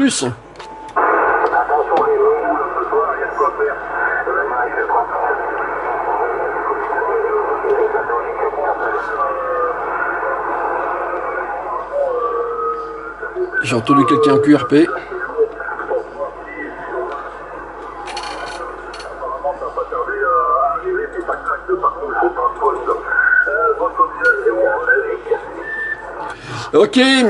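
Voices and static crackle through a radio loudspeaker.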